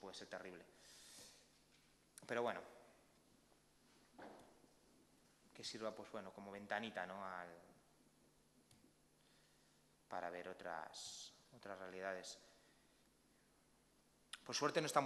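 A man speaks calmly into a microphone, with pauses, in a large room.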